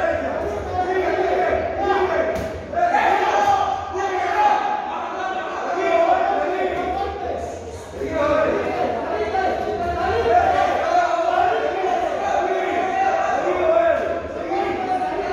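Boxing gloves thud against bodies in quick punches.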